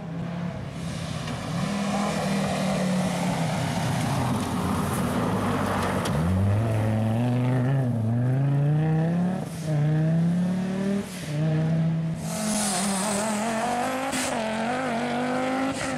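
A five-cylinder turbocharged Audi quattro rally car accelerates hard.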